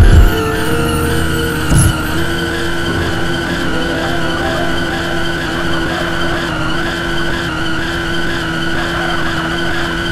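A car engine roars steadily as a vehicle speeds along.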